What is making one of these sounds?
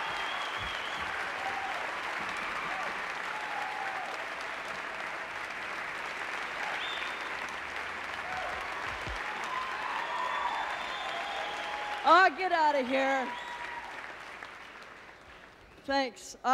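A large audience cheers and applauds in a big hall.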